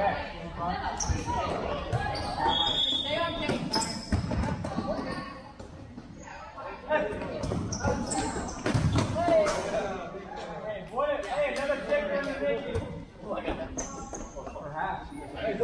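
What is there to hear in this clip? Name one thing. Young players shout and call out to each other across an echoing hall.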